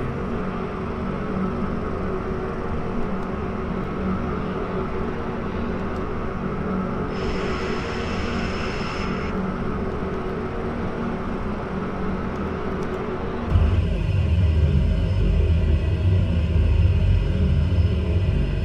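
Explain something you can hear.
Propeller engines drone steadily as a small plane taxis, growing louder and deeper toward the end.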